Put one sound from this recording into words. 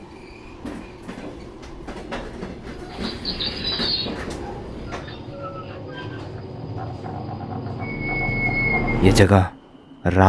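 A train car rumbles and clatters along a track.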